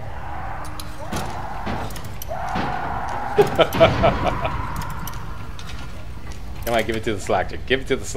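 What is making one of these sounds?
A metal lock pick scrapes and clicks inside a lock.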